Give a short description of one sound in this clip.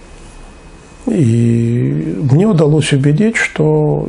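An older man speaks calmly and closely into a microphone.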